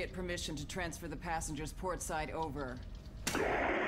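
A young woman speaks calmly, as if over a radio.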